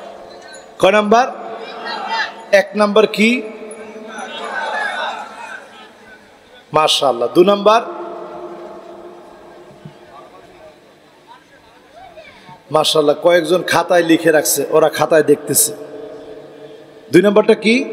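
A man preaches loudly and with passion through a microphone and loudspeakers, with echo.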